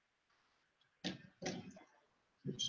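A pencil is set down with a light tap.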